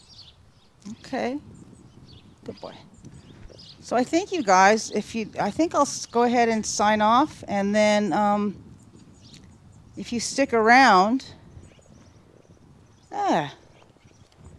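A woman talks in a high, gentle voice.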